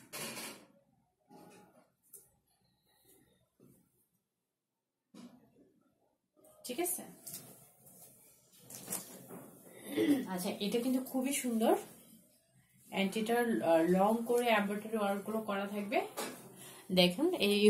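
Cloth rustles as clothes are handled.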